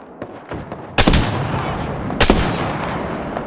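A sniper rifle fires two sharp shots.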